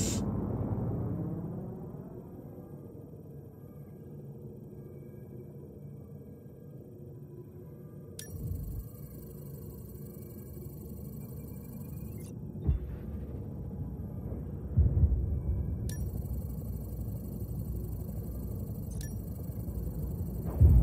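Wind rushes steadily past a parachute gliding through the air.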